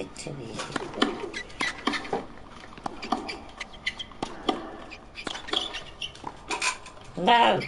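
Tennis balls are struck back and forth with sharp pops.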